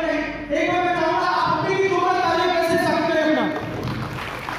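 A large crowd sings together loudly in a big echoing hall.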